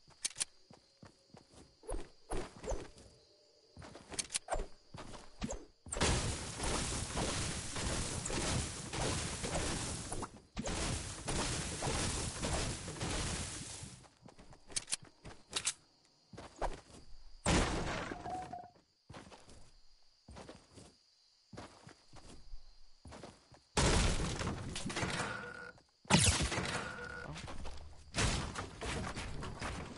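A pickaxe strikes with sharp knocks.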